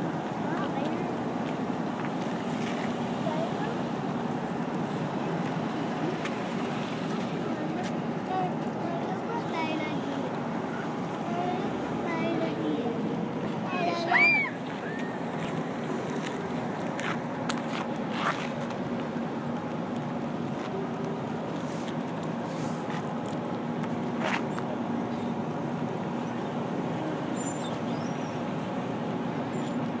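A slow procession of police cars and pickup trucks rolls past close by on asphalt.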